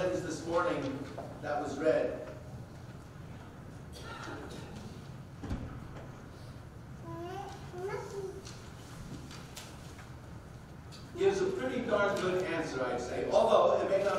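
A middle-aged man reads aloud calmly into a microphone, in a softly echoing room.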